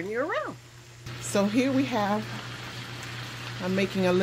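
Vegetables sizzle in a frying pan.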